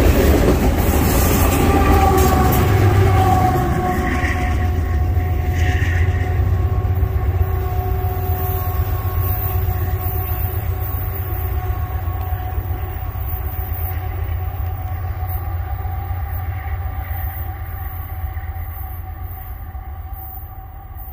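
A diesel locomotive engine roars loudly as it passes, then fades into the distance.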